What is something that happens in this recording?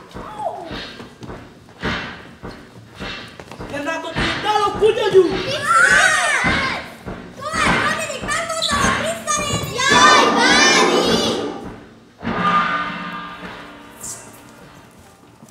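Several children shout and talk excitedly, echoing in a large hall.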